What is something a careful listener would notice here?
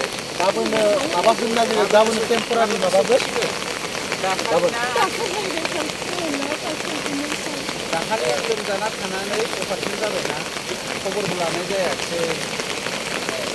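Light rain patters on umbrellas.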